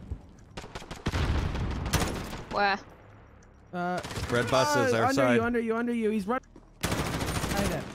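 A rifle fires short bursts of shots.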